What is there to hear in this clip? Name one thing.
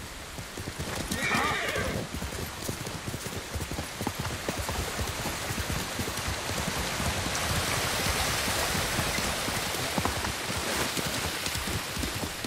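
A horse's hooves thud quickly on grass and earth.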